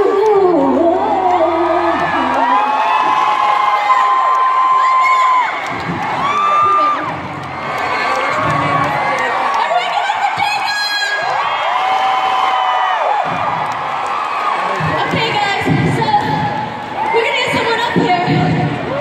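Women sing loudly over the music.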